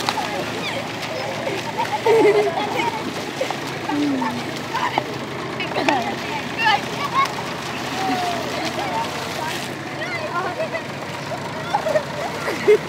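Water splashes as boys kick and run through shallows.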